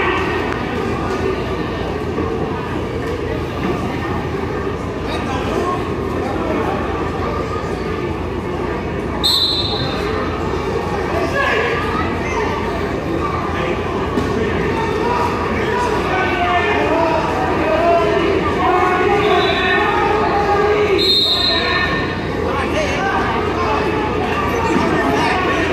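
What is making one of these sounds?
A crowd of spectators talks and cheers in a large echoing hall.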